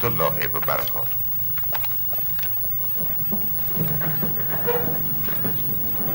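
Papers rustle as a man handles them.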